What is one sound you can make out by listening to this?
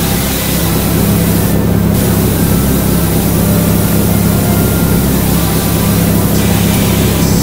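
A pressure washer sprays a steady, hissing jet of water.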